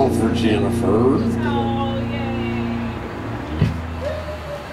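A drum cymbal crashes.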